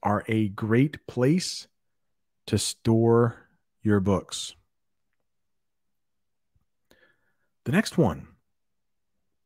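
A man speaks clearly and slowly into a close microphone, pausing between phrases.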